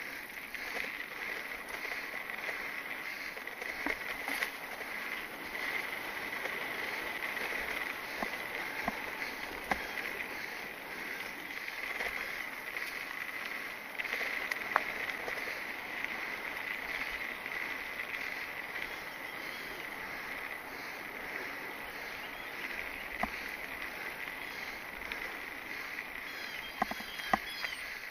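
Mountain bike tyres roll over a dirt trail.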